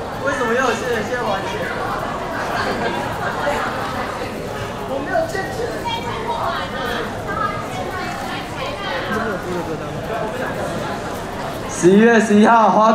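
A crowd chatters loudly in a large echoing hall.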